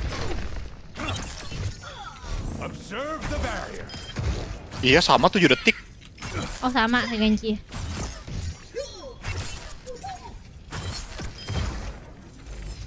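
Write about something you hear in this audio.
Gunfire bursts from a game weapon.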